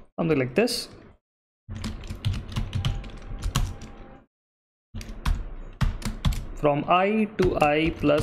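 Keys click rapidly on a keyboard as someone types.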